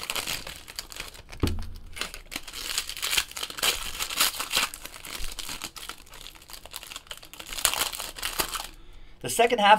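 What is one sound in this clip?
Plastic wrappers crinkle and rustle as hands tear open card packs.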